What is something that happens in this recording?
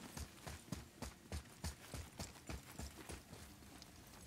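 Heavy footsteps run quickly on stone.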